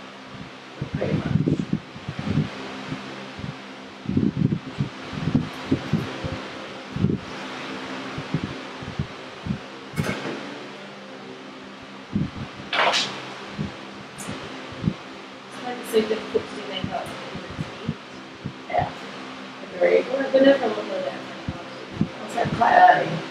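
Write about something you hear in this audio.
A young woman talks casually nearby.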